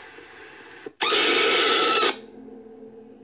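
A woman lets out a loud, piercing scream.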